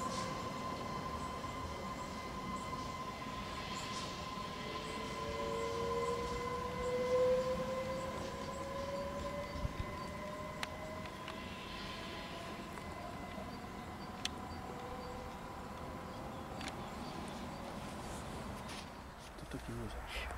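An electric multiple-unit train rolls slowly along the rails, its motors whining.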